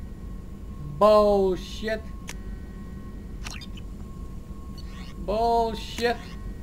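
Short electronic menu tones chime with a bright, falling ring.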